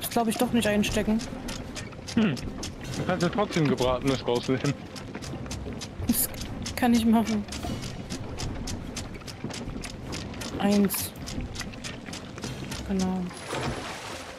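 Footsteps knock quickly on a wooden deck.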